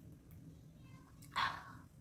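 A young woman drinks from a bottle with gulping sounds.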